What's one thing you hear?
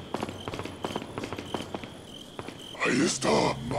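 Footsteps tread steadily on a stone floor.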